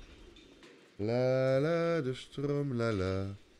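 A man talks loudly and with animation close to a microphone.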